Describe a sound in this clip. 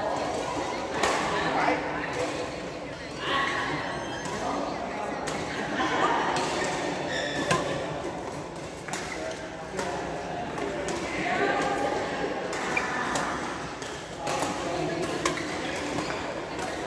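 Badminton rackets strike a shuttlecock with sharp pops in a large echoing hall.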